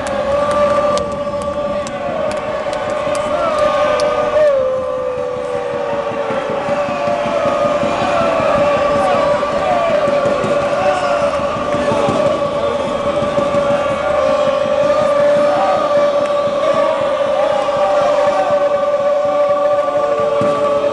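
A large crowd cheers and chants loudly in an echoing arena.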